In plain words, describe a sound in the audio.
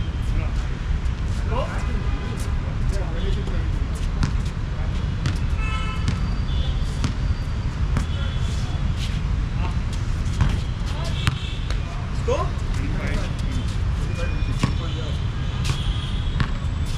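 A basketball bounces on a hard court with sharp thuds.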